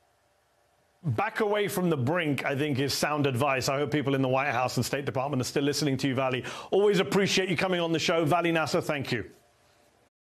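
A man speaks steadily through a microphone, as if on a broadcast.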